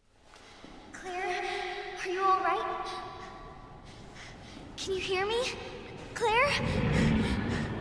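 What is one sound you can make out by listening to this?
A man calls out anxiously, close by.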